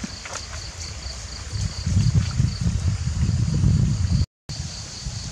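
A boy's bare feet squelch through mud.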